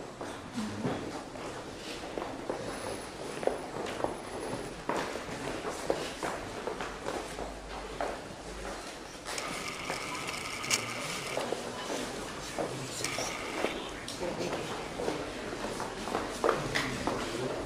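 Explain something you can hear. Several people murmur quietly in an echoing hall.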